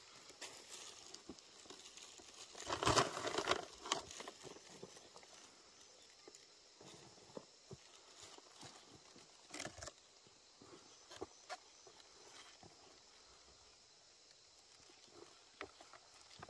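Boots crunch and scuff on loose dry soil.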